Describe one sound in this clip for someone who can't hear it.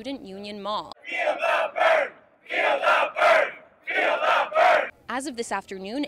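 A large crowd cheers and chants outdoors.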